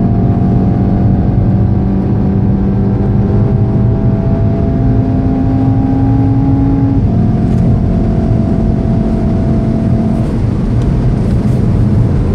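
Wind and tyres rush loudly around a fast-moving car.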